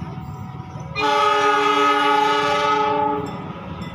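A train horn blares loudly and steadily, then stops.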